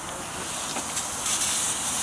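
A small steam engine hisses softly.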